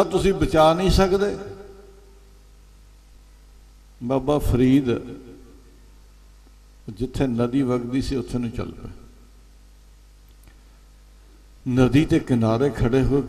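An elderly man speaks with feeling into a microphone, in bursts with pauses between them.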